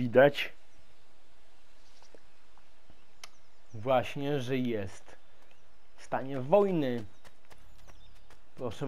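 Footsteps crunch on a dirt path and then tap on stone steps.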